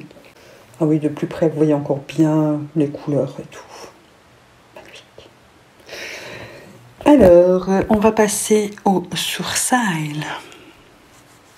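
A woman talks calmly and close to a microphone.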